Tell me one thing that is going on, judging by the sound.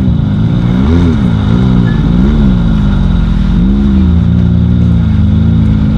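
An off-road buggy's engine revs up and down, loud and close, as it drives away.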